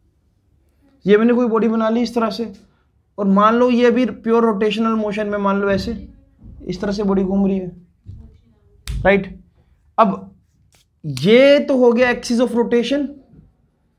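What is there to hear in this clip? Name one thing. A young man speaks clearly and calmly, close by.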